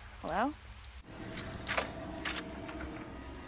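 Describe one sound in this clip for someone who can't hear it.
A key turns in a door lock with a sharp click.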